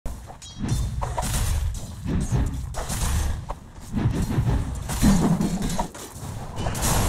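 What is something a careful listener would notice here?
Magic blasts and weapon hits crash and whoosh in a busy fantasy battle.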